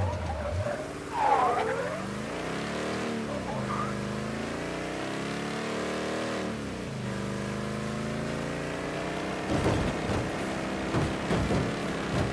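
A truck engine hums and revs up and down as it drives.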